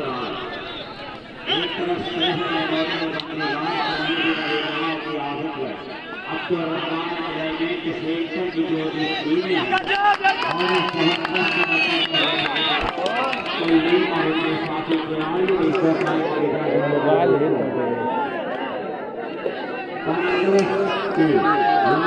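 A large outdoor crowd cheers and shouts loudly.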